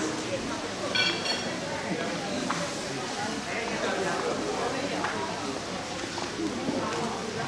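A crowd of men and women chatter nearby in a room.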